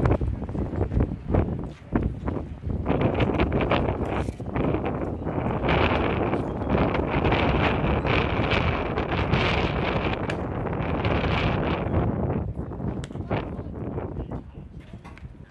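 Wind gusts hard across the microphone outdoors.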